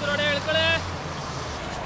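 A bus horn honks.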